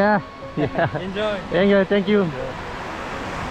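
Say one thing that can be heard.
A young man laughs and talks with animation close by.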